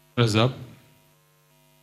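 A man shouts loudly into a microphone, heard through loudspeakers.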